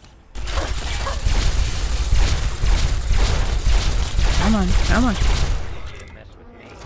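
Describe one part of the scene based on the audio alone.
A gun fires in rapid bursts, echoing loudly.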